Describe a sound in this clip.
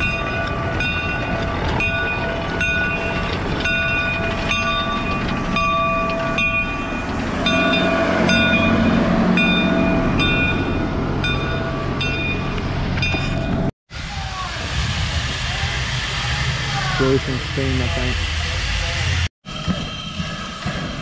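A steam locomotive rumbles nearby.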